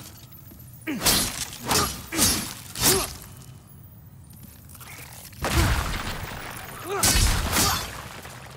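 Sword blades swish through the air and strike in quick blows.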